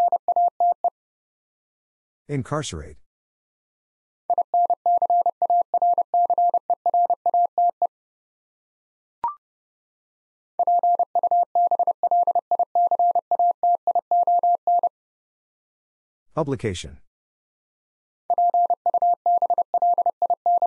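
A telegraph key taps out rapid Morse code beeps in a steady high tone.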